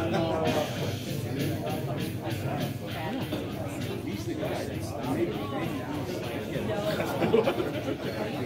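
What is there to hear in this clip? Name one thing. Several adults talk at once in a murmuring room.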